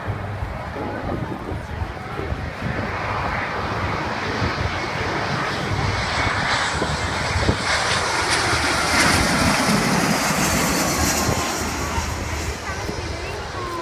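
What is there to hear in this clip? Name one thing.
A jet airliner roars low overhead, growing louder and then fading.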